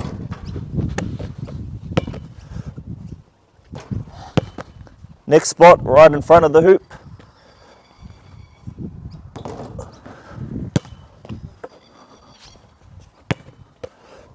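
A basketball bounces sharply on a hard court.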